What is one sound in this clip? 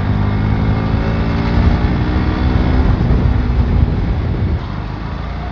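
Wind rushes past loudly while riding.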